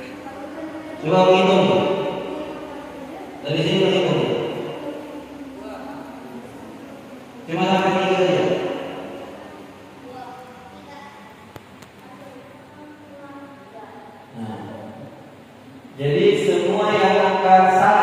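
A group of children recite together loudly in an echoing hall.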